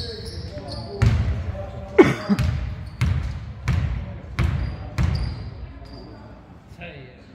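A basketball bounces on a wooden floor in a steady rhythm.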